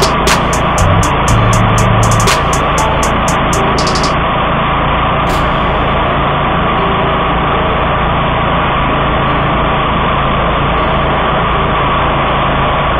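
A mower engine runs loudly and steadily close by.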